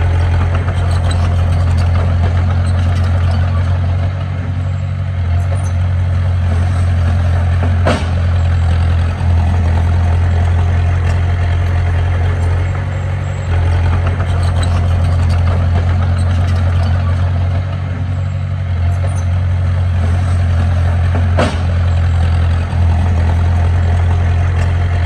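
A small bulldozer's diesel engine rumbles steadily nearby.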